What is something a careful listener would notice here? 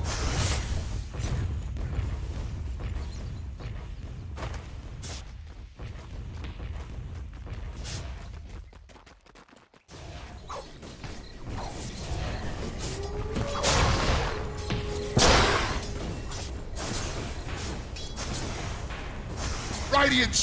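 Spell blasts and weapon clashes ring out during a battle.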